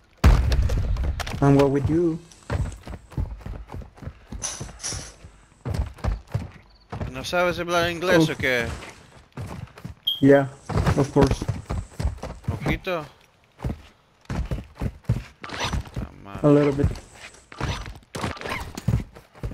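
Footsteps run over dry ground.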